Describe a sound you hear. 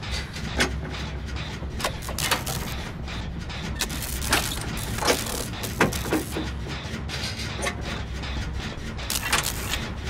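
An engine clanks and rattles during a repair.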